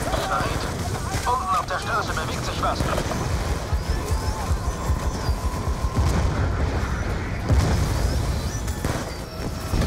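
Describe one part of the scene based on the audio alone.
Rifle shots fire in rapid bursts.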